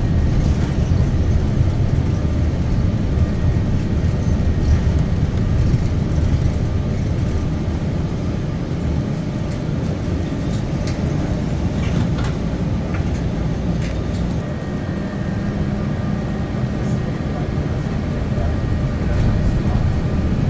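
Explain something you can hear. A car's engine hums steadily, heard from inside the cabin.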